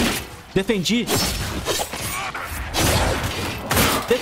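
Magic blasts crackle and whoosh.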